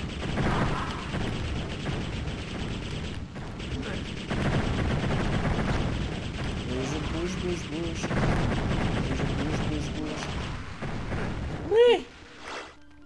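Fireballs blast and explode in quick succession.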